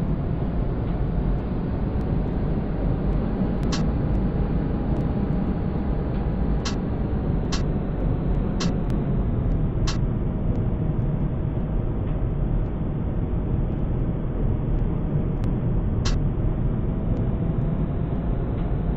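A tram's electric motor hums steadily.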